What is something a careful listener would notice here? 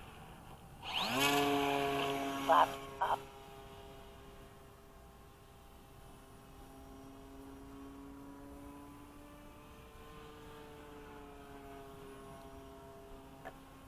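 A model plane's electric motor whines, revving up sharply and then droning on steadily as it flies away.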